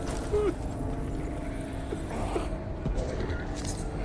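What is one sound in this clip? A sword strikes in a scuffle.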